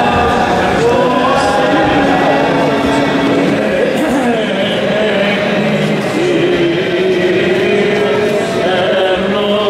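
Several men chant together in a large echoing hall.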